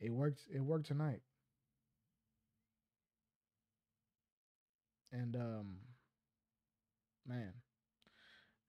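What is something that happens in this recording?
A young man talks casually into a close microphone, in short bursts with pauses.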